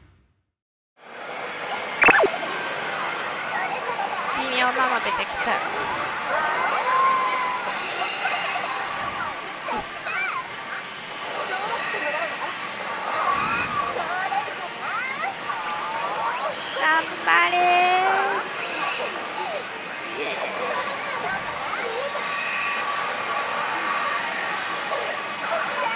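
A slot machine plays busy electronic music and chimes.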